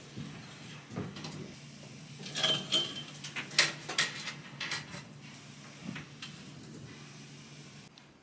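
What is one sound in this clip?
Clothes hangers clatter and scrape on a rail.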